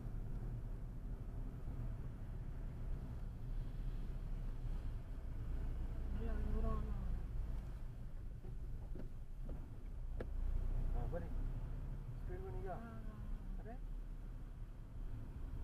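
A car engine hums steadily with road rumble as it climbs.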